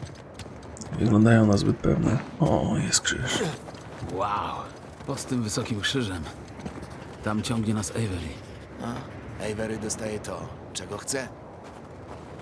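A man talks into a close microphone in a relaxed, chatty way.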